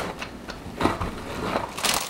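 A hand-pulled food chopper whirs and rattles.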